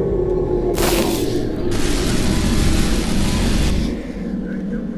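Electricity crackles and zaps loudly, then fades.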